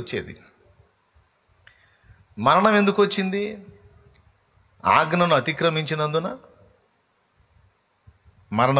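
A man speaks forcefully into a microphone in short bursts.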